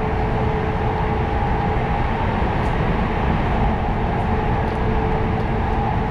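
Another train rushes past close by.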